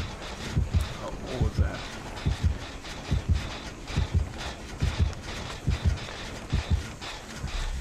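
Heavy footsteps thud quickly on soft ground.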